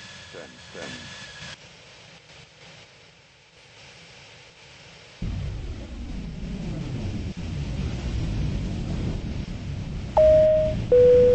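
A jet airliner's engines roar as the plane lands.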